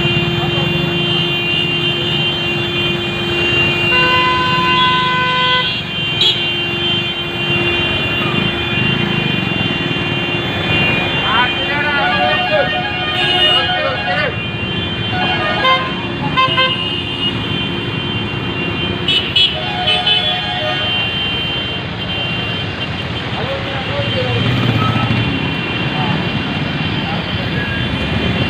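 A motorcycle engine rumbles steadily in busy street traffic.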